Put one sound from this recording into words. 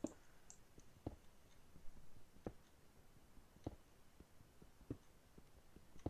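A pickaxe taps repeatedly at stone until a block crumbles.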